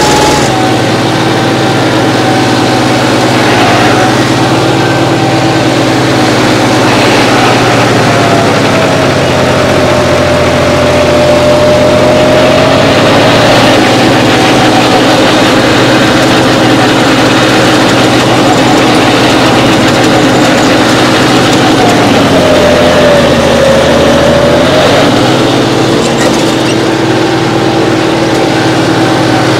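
A tractor engine roars and strains under load.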